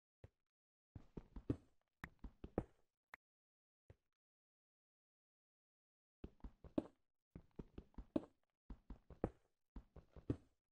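A pickaxe chips at stone in quick, repeated taps.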